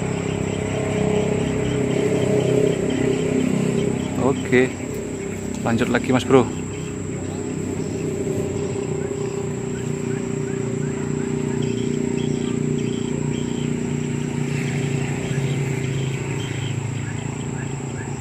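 Leafy plants rustle as a man pushes through tall grass.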